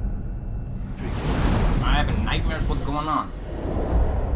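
A fire roars and crackles loudly.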